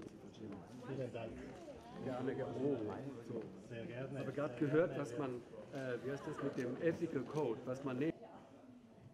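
Another older man answers cheerfully close by.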